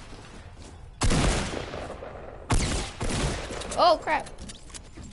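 Gunshots ring out in loud bursts.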